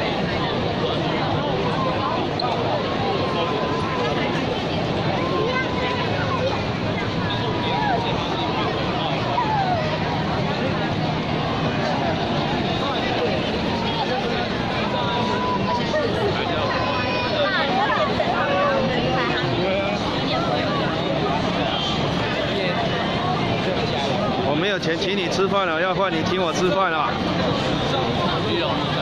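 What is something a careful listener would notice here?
A dense crowd of men and women chatters steadily nearby and in the distance.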